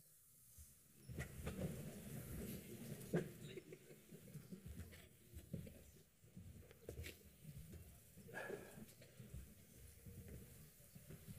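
People murmur quietly in the background.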